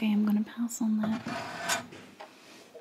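A ceramic ornament clinks and knocks as it is set down on a wooden shelf.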